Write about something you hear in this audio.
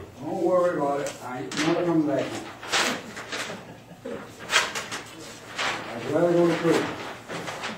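A man speaks calmly, heard from across the room.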